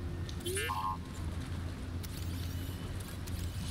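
A lightsaber hums steadily.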